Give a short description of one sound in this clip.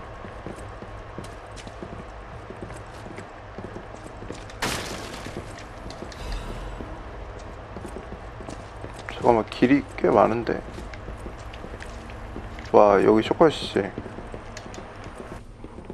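Footsteps tap on wooden floorboards.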